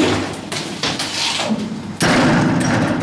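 Elevator doors slide shut with a thud.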